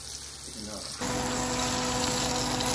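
Fish sizzles loudly in a hot frying pan.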